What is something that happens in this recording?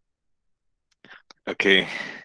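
A middle-aged man speaks over an online call.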